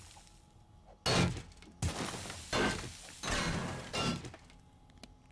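A tool strikes stone with heavy, crunching thuds.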